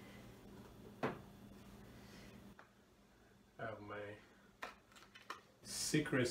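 Dishes clink against each other.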